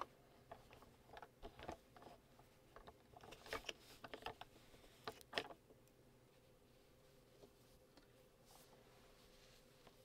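Fingers rustle softly against a ball of yarn.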